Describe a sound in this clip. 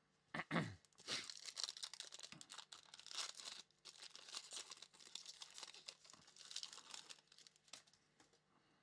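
A foil card pack crinkles and tears as hands open it.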